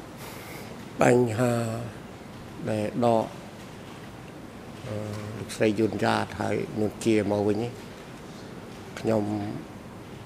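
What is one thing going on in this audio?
A middle-aged man speaks slowly and haltingly into a microphone.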